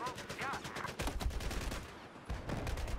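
Rifle shots fire in a rapid burst.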